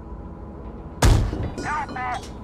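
A heavy gun fires with a loud boom.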